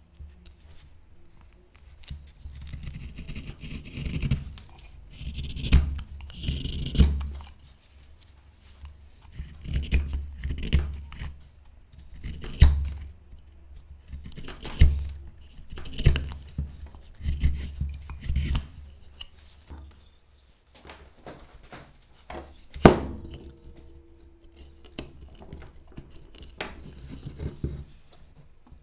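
A knife scrapes and shaves dry wood in short strokes.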